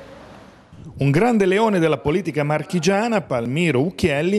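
An elderly man speaks animatedly, close to a microphone.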